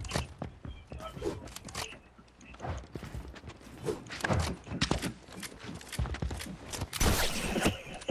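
Quick clattering knocks and thuds repeat as structures are built.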